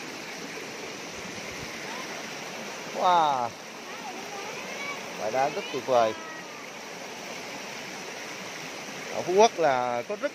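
A shallow stream ripples and gurgles over rocks.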